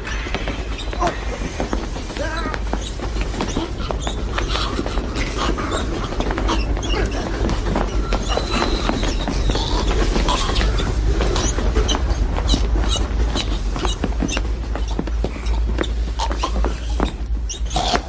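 Bodies thump and scuffle on a hard floor.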